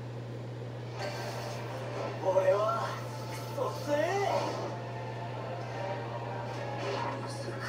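Crackling sound effects play from a television.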